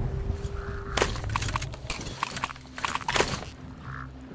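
A rifle's magazine and bolt click and clatter during a reload.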